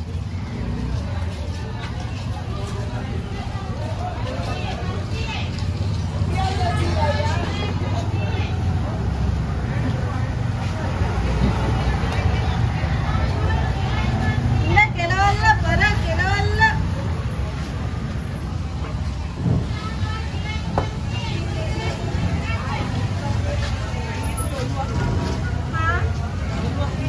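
A knife slices through raw fish.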